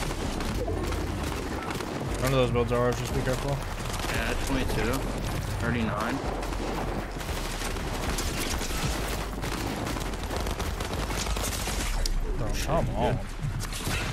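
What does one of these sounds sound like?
Keys clatter rapidly on a keyboard.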